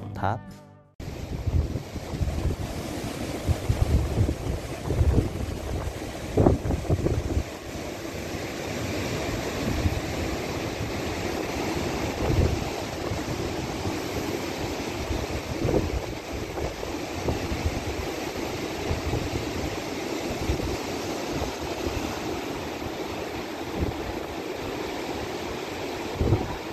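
Wind blows and rumbles across the microphone outdoors.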